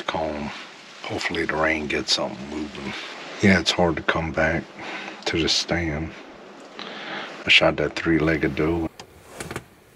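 A man speaks quietly, close by.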